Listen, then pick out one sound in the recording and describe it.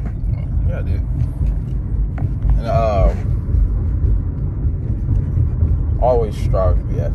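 A car engine and road noise rumble steadily inside the car.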